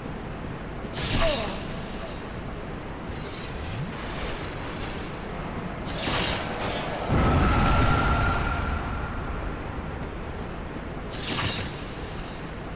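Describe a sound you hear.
A sword swings through the air.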